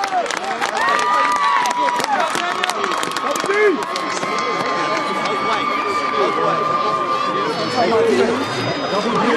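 A crowd cheers and whistles loudly outdoors.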